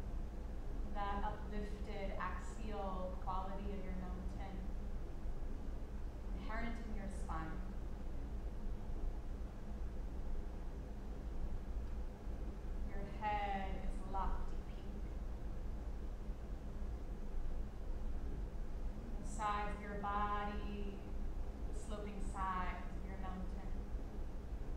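A woman speaks calmly and softly in short phrases, with long pauses.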